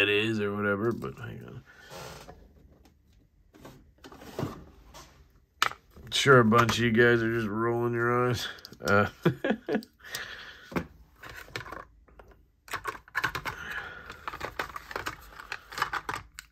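Small metal parts click and tap as they are handled.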